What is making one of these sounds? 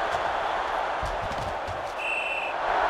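Players' pads thud together in a tackle.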